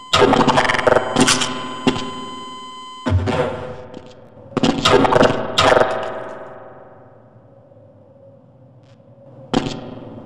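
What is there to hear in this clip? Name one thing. Loud explosions boom and ring out in an echoing hall.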